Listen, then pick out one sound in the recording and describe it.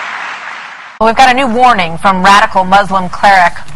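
A woman speaks clearly into a microphone, like a news presenter.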